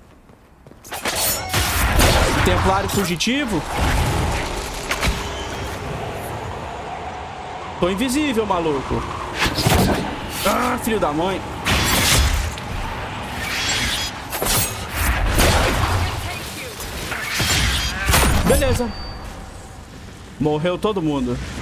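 Magic blasts whoosh and crash in a fight.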